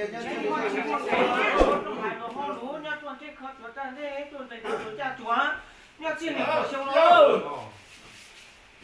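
Several young men chant loudly together nearby.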